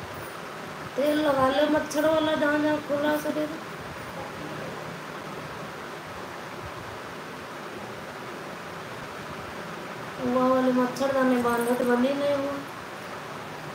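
A young woman speaks close by.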